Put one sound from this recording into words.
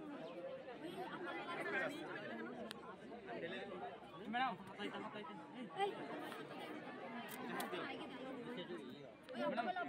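Several young people chatter nearby.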